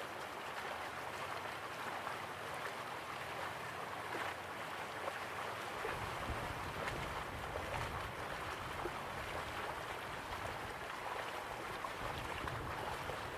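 A stream rushes over rocks.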